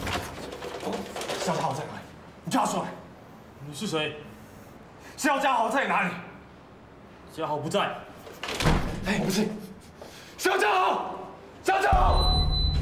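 A man speaks anxiously.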